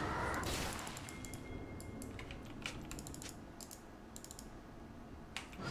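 Game sound effects click and whoosh.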